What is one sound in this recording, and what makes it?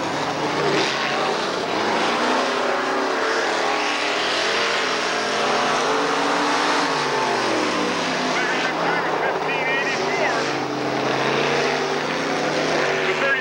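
Race car engines roar loudly, rising and falling in pitch.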